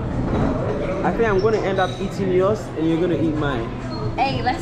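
A young woman talks brightly close by.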